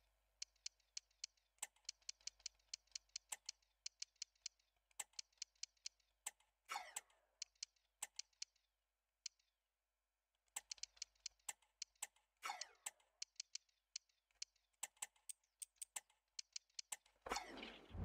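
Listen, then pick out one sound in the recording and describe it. Short sharp menu clicks tick in quick bursts.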